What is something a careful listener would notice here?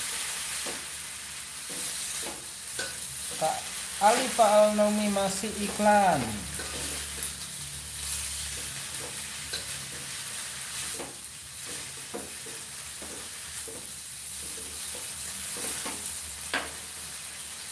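A metal spatula scrapes and clanks against a metal wok.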